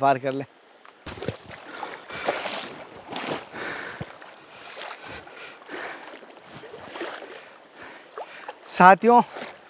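Water splashes as a man wades through a stream.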